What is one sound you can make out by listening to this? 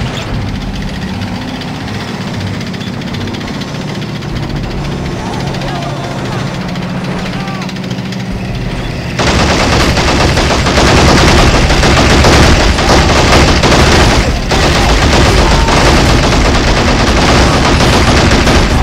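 A tank engine rumbles and clanks as the tank drives.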